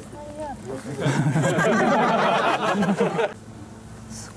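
A small crowd cheers and laughs loudly.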